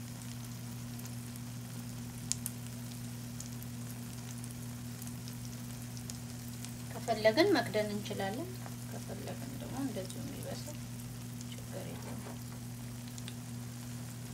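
Food sizzles and crackles softly in a frying pan.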